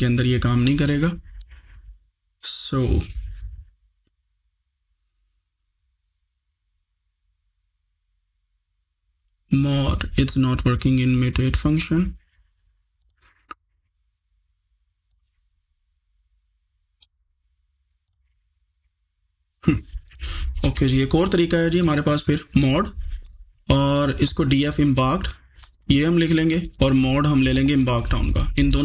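A man speaks calmly into a close microphone, explaining.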